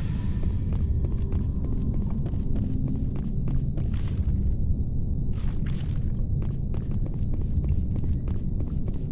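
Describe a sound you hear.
Footsteps thud on hard ground at a walking pace.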